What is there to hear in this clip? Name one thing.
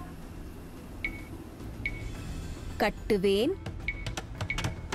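Short game interface clicks sound now and then.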